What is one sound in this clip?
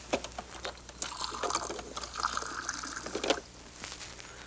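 Water pours from a flask into a glass.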